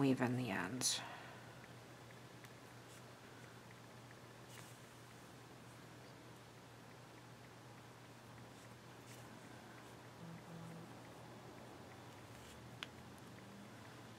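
Yarn rustles softly as it is pulled through knitted fabric.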